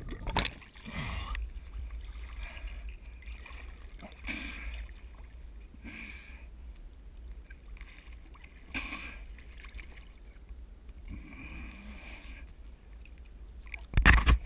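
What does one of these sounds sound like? Small ripples lap and splash at the water's surface close by.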